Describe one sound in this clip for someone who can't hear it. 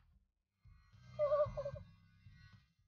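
A cartoon squirrel chatters in a high, squeaky voice.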